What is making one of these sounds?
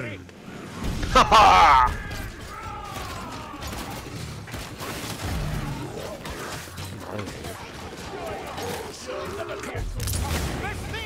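A crossbow fires bolts with sharp twangs.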